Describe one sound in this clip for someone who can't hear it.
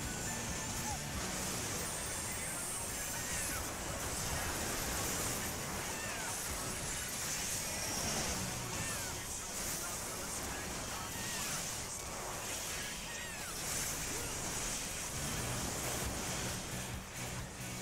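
Magic spells whoosh and chime in quick bursts.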